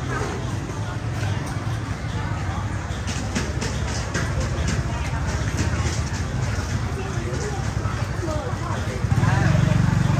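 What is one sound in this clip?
A motor scooter rumbles slowly through a crowd.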